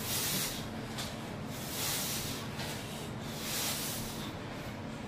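A man exhales hard with each pull-up.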